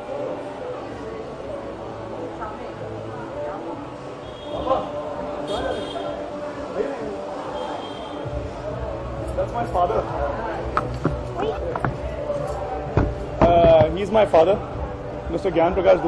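A crowd chatters and murmurs all around.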